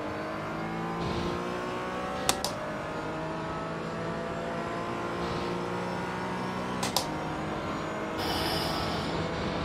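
A race car engine whines and climbs in pitch as it accelerates.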